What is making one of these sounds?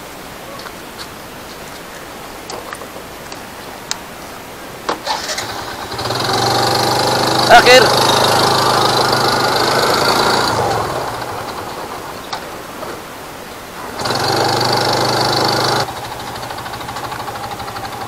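A scooter engine hums and revs as it rides along a road.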